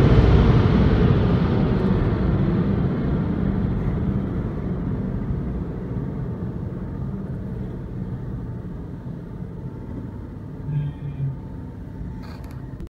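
A car engine hums with a low, steady rumble.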